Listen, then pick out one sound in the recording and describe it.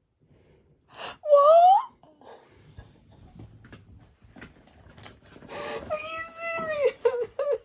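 A young woman laughs close to the microphone.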